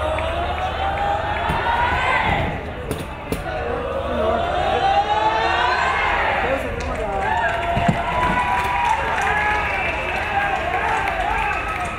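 A crowd cheers and claps along.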